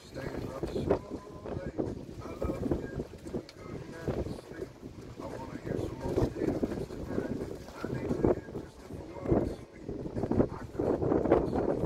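Small waves lap and splash on the water.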